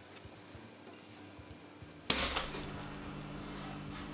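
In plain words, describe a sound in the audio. Something soft and wet squelches and splats against a hard surface.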